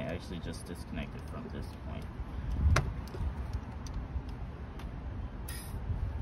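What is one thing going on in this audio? Plastic engine parts click and knock as a hand works among them.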